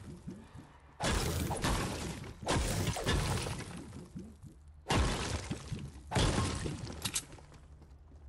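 A pickaxe strikes wood and stone with loud thuds.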